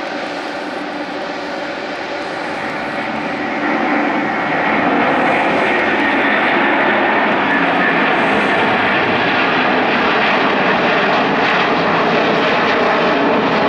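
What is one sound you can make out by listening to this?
A jet airliner roars loudly as it takes off and climbs overhead, growing louder.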